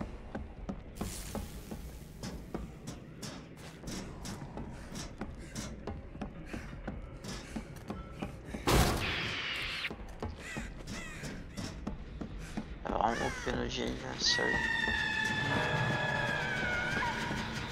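Quick footsteps thud across a metal floor.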